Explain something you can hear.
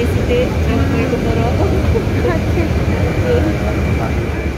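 A woman talks close by with animation.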